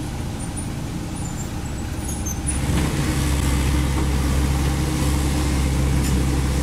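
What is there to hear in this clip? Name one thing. A diesel engine of a small excavator rumbles steadily and grows louder close by.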